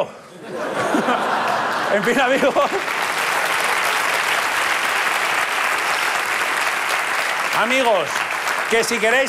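A large audience claps.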